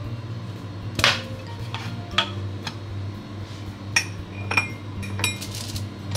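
Coffee beans rattle inside a tin container.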